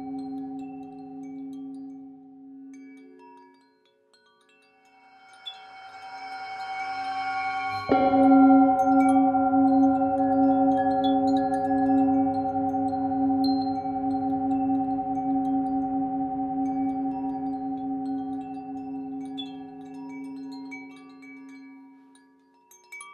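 A metal singing bowl hums with a long, swelling ringing tone.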